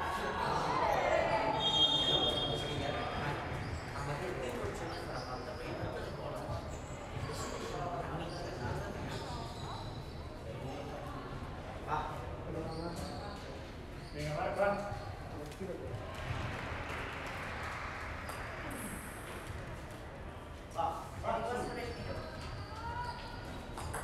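Men talk in a large echoing hall.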